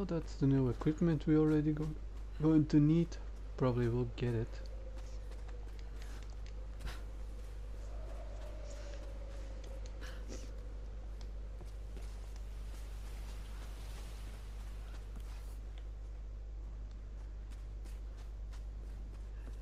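Footsteps run over snow and stone.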